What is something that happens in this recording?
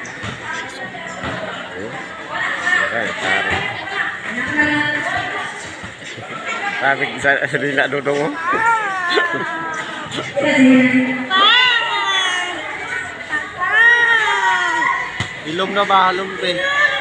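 A crowd of children and young people shout and cheer outdoors.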